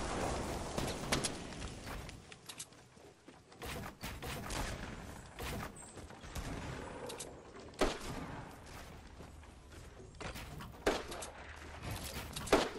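Wooden walls and ramps snap quickly into place with short knocks.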